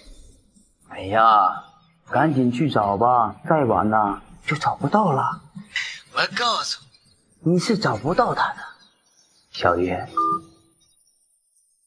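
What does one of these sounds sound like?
A man speaks mockingly into a phone.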